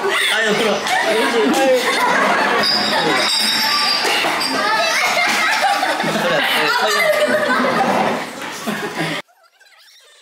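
A middle-aged woman laughs nearby.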